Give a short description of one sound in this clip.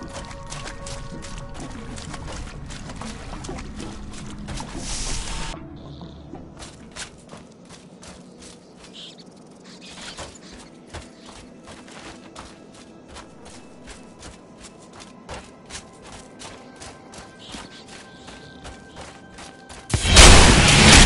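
Footsteps tread steadily on soft ground.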